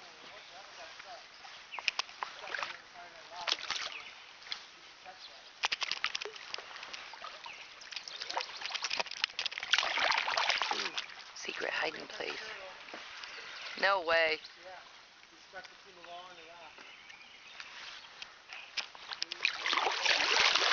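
A paddle splashes and drips in water close by.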